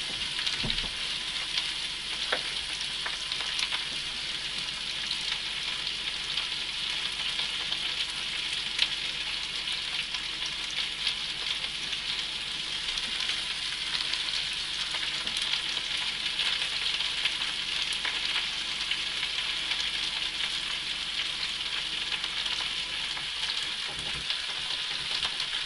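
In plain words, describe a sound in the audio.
A utensil clinks and scrapes against a pan now and then.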